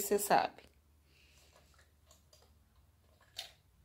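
A plastic toy clicks and rattles softly.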